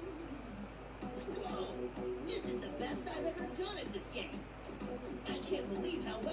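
A television plays a programme loudly nearby.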